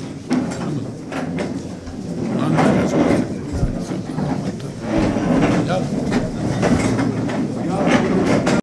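An elderly man speaks with animation into a microphone in a large echoing room.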